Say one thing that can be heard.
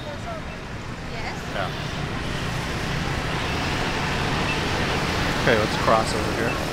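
Voices of passers-by murmur at a distance outdoors.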